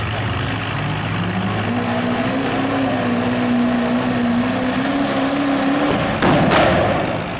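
A diesel truck engine revs up and roars as it pulls.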